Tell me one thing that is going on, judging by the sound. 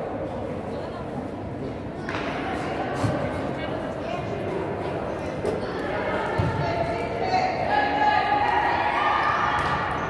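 A ball bounces on the court.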